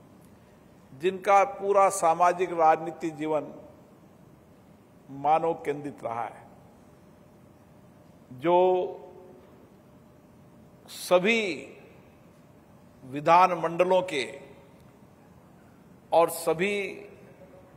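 A middle-aged man speaks slowly and emphatically into a microphone, in bursts with pauses, in a large echoing hall.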